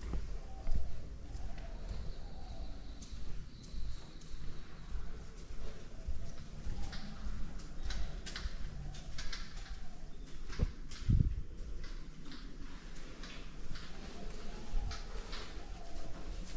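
Footsteps tap on a hard floor in a narrow echoing passage.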